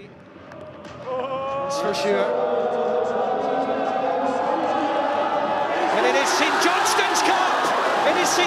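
A group of men cheer and sing loudly outdoors.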